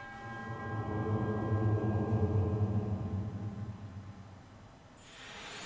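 A low, soft humming chord swells and fades.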